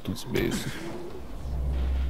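Footsteps thump across a metal roof.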